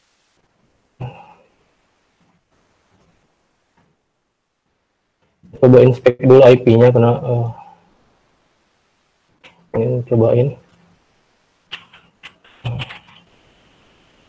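A man speaks calmly through an online call, in short bursts.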